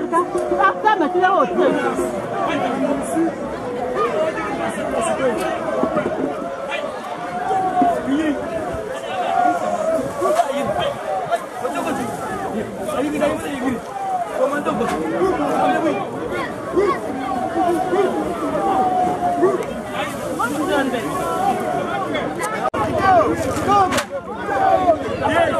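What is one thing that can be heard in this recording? A crowd of men and women talk and call out loudly outdoors.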